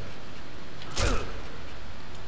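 A silenced pistol fires a single muffled shot.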